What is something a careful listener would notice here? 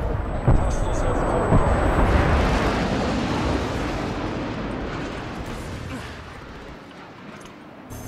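A smoke grenade hisses loudly and slowly fades.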